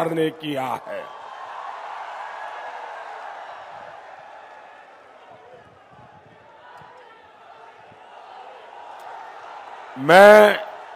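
A large crowd cheers and shouts.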